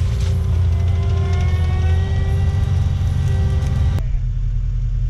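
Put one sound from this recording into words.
A heavy machine's engine roars and whines as it grinds brush.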